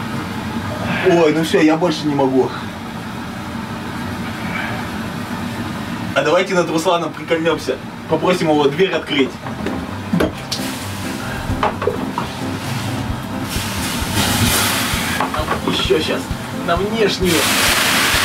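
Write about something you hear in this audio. A man talks with animation close by.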